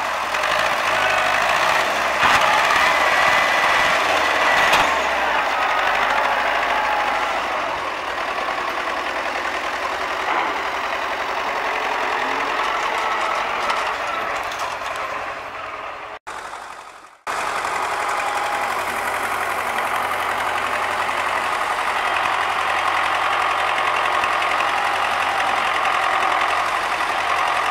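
A tractor engine chugs and rumbles close by.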